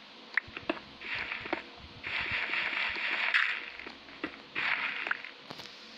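Stone blocks crumble and break with a gritty crunch.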